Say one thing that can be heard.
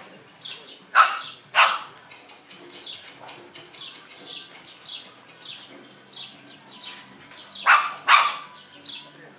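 Puppies yap and yelp sharply while playing.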